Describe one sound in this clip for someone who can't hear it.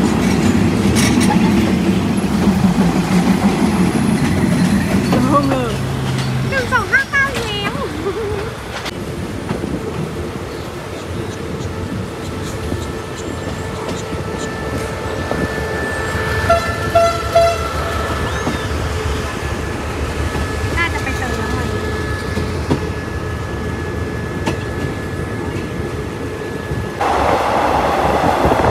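A train rumbles and rattles along the tracks.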